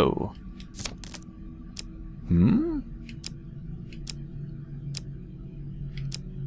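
Playing cards slap down with soft clicks.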